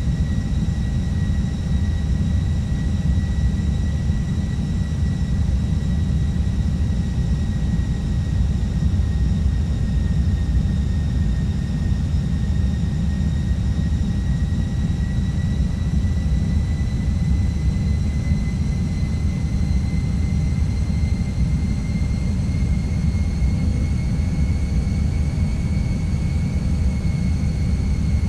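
Jet engines roar steadily with a high, even whine.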